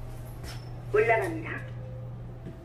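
A finger clicks an elevator button.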